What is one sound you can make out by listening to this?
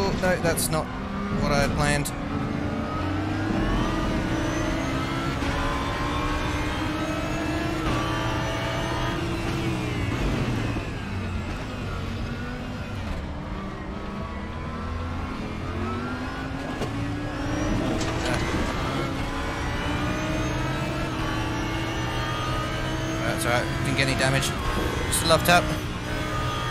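A racing car engine revs and shifts gears.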